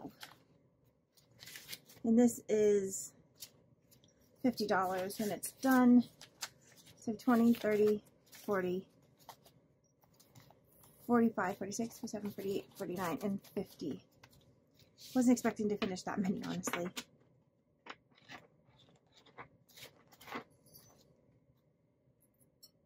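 Paper bills rustle and crinkle as hands count them.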